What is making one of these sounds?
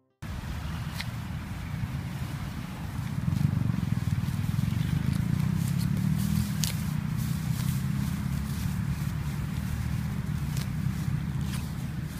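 Hand clippers snip grass with sharp clicks.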